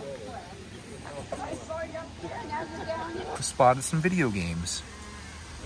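People chat nearby outdoors.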